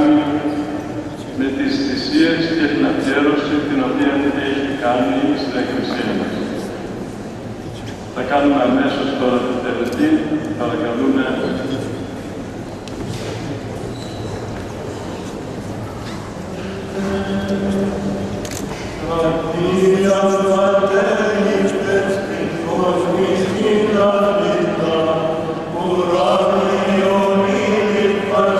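Male voices chant together in a slow hymn that echoes through a large hall.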